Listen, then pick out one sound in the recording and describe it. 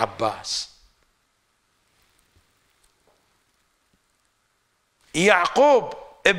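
An elderly man speaks into a microphone in a slow, chanting voice.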